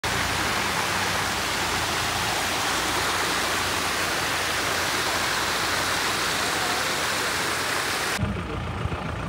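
Water rushes steadily over rocks.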